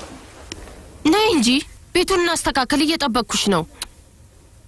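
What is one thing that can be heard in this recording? A woman speaks.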